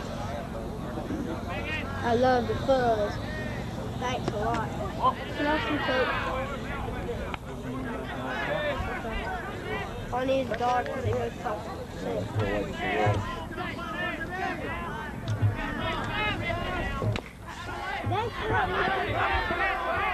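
Adults and children chatter and call out close by, outdoors.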